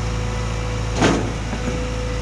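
A loud metal bang rings out as a loader's bucket knocks the trailer.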